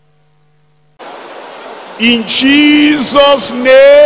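A crowd of men and women sings loudly.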